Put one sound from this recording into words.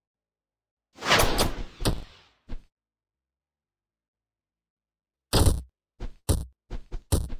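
Game sound effects whoosh and thud as cartoon fighters clash.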